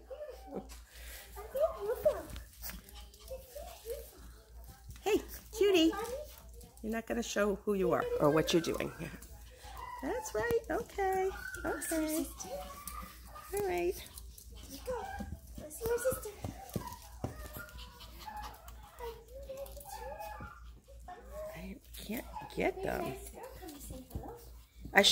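A woman talks to a puppy close by in a bright, cooing voice.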